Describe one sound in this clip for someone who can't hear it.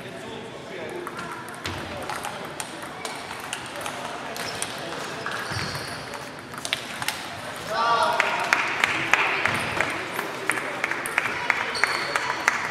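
Many people talk in a low murmur across the hall.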